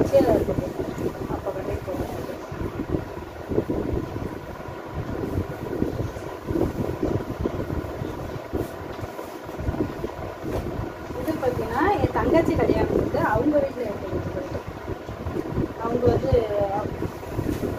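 Cloth rustles as fabric is handled and folded.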